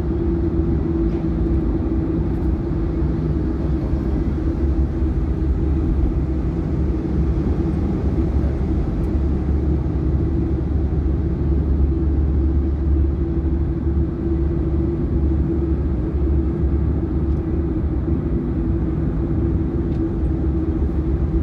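A car engine drones steadily, heard from inside the car.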